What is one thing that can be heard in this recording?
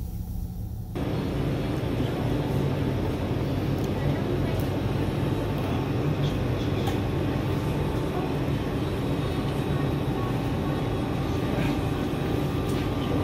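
Indistinct chatter and clatter fill a busy room.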